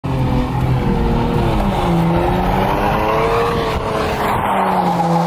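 A car engine roars and its pitch rises and falls as it drives.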